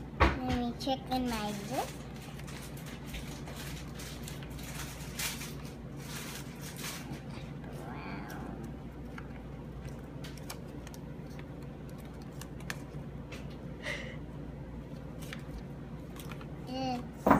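Paper and packaging rustle and crinkle.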